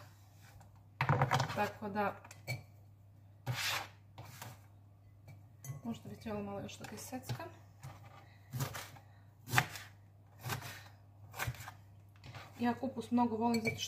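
A knife cuts through cabbage on a cutting board.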